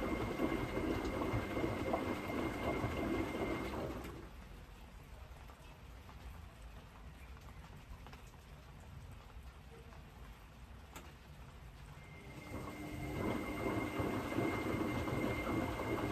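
A washing machine motor hums low and steadily.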